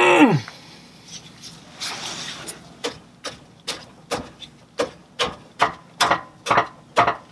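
A wrench clicks and knocks against metal.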